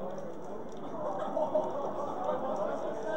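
Young men shout and cheer excitedly nearby.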